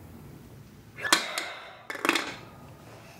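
A woman blows hard in short bursts into a mouthpiece.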